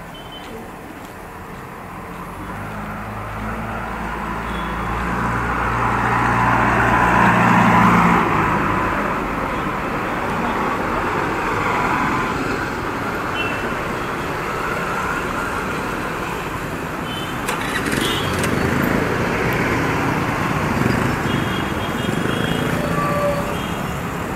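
A motorcycle engine hums steadily close by as it rides.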